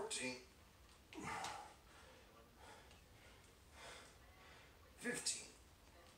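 A man breathes out hard and grunts with effort close by.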